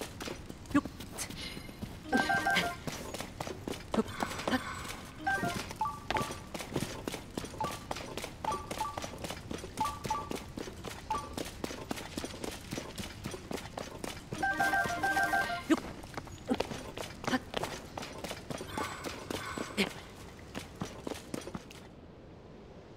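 Footsteps and hands scrape and thud on rock in a quick climbing rhythm.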